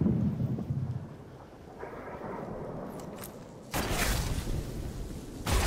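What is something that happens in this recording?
Footsteps crunch on grass and stones.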